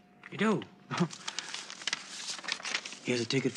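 Paper rustles as an elderly man handles it.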